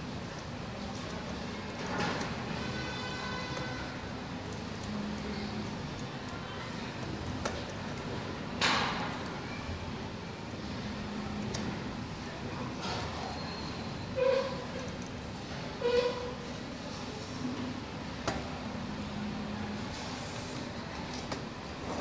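Wires rustle and scrape as a hand handles them.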